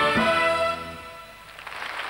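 A big band ends a tune on a loud held chord.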